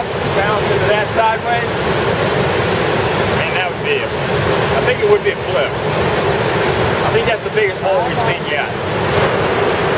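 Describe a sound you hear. A man speaks outdoors over rushing water.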